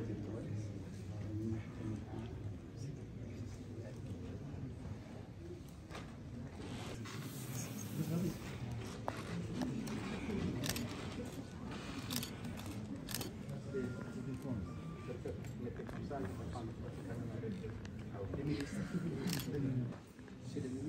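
A crowd of men chatters in a large room.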